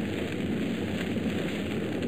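A large fire roars and crackles.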